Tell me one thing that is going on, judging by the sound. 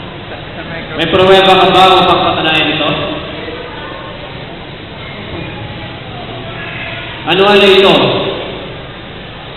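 A young man speaks into a microphone through loudspeakers in an echoing hall.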